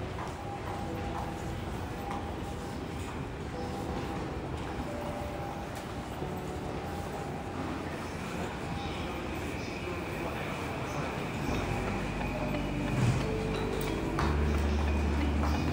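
A crowd murmurs faintly in a large echoing hall.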